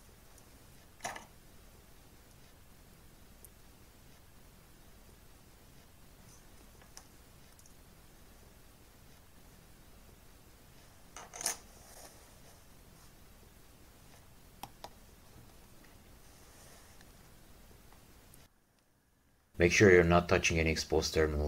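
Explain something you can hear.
Small metal clips click softly as test leads are attached.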